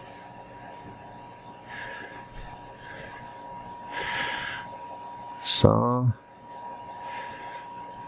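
A man talks calmly into a microphone, close by.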